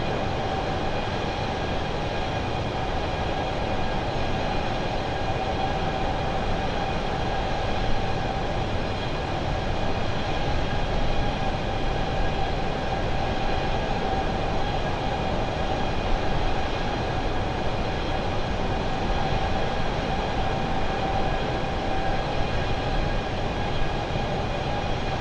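Jet engines roar in a steady drone.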